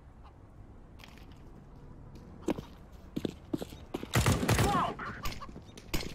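Footsteps thud quickly on stone and grass.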